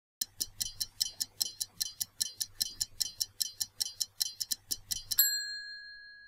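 A stopwatch ticks quickly and steadily.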